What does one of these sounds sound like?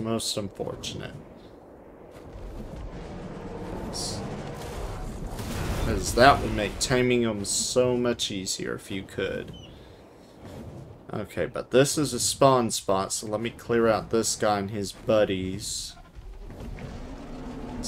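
Large wings flap steadily in flight.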